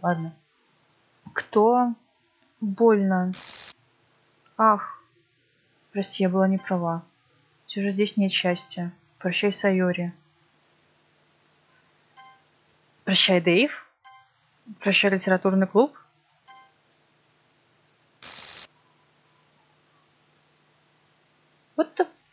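A young woman speaks calmly and closely into a microphone.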